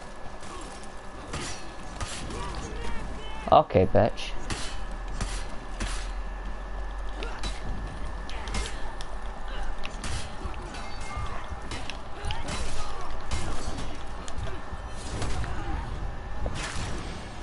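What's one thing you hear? Swords clash and clang against shields in quick, repeated blows.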